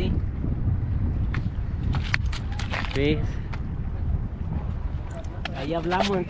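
A fish flaps and slaps against stone.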